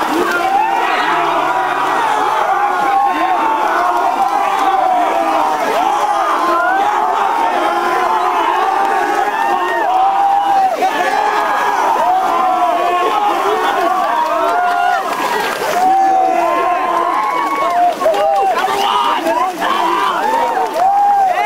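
Water splashes loudly as swimmers thrash in a pool.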